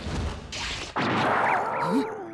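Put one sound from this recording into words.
A heavy punch lands with a wet thud.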